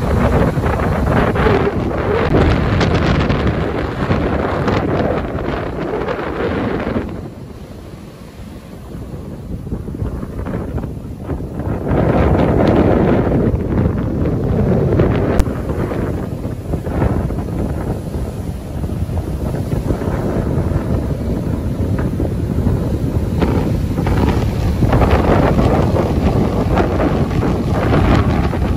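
Wind blows hard across the open beach.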